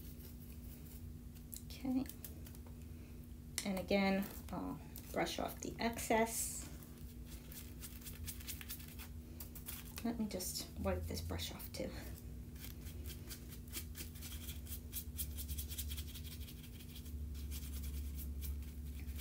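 A brush scrubs lightly against card.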